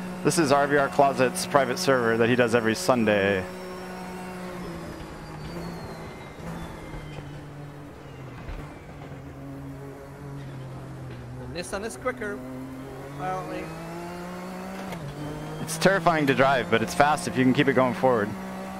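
A race car engine drones steadily, its pitch rising and falling with gear shifts.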